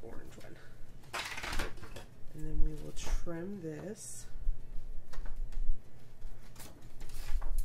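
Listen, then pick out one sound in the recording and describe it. A sheet of paper rustles as a page is lifted and turned.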